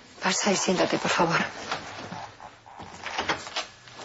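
A door clicks shut.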